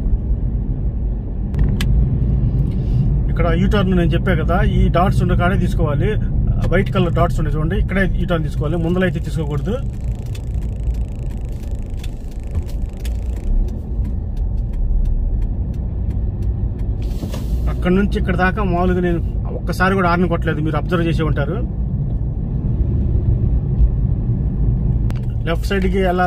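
A car engine hums steadily from inside the car while driving.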